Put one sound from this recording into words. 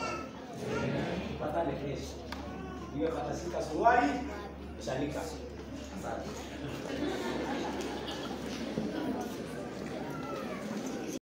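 An elderly man speaks calmly through a loudspeaker in an echoing room.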